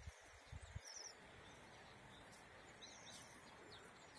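A small bird chirps softly nearby.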